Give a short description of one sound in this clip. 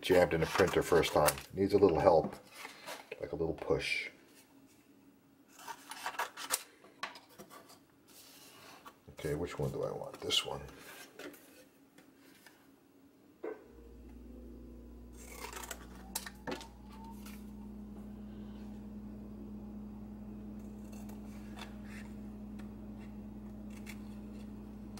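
Scissors snip through thin cardboard.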